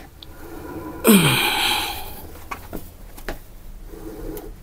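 A heavy wooden cabinet scrapes across the floor.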